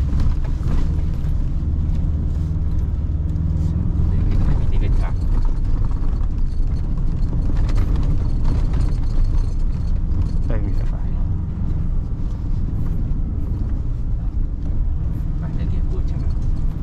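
A vehicle engine rumbles steadily from inside the cabin.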